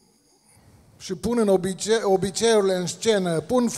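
A middle-aged man speaks with animation into a microphone over loudspeakers in an echoing hall.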